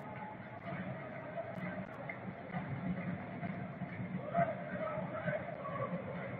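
A large stadium crowd murmurs and chatters in the distance.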